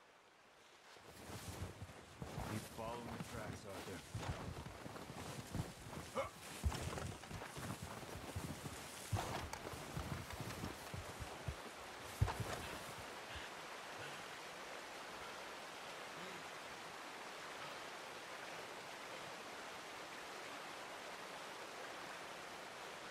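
Wind blows steadily, whipping up snow.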